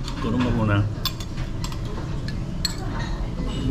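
Chopsticks click against a bowl.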